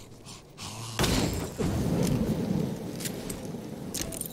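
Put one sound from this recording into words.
A burst of flame roars.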